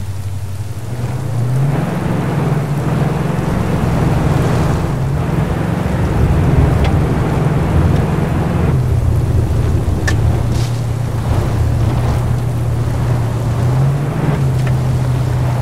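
A car engine hums and revs as the vehicle drives along.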